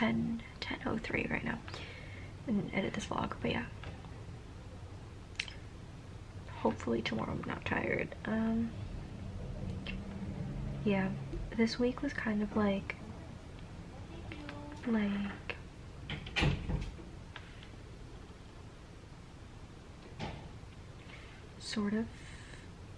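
A young woman speaks softly and close, in short phrases with pauses.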